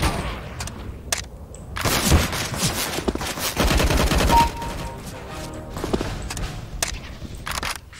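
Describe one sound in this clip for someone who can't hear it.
A rifle's magazine is swapped with metallic clicks.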